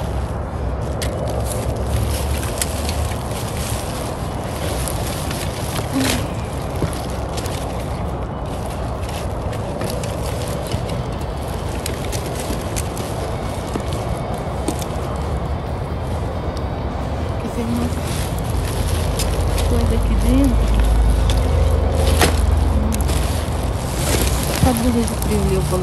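Plastic bags rustle and crinkle as things are handled.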